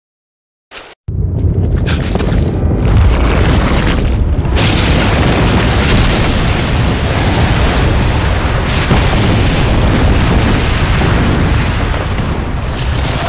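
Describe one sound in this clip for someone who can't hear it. Heavy rumbling and crashing fill the air.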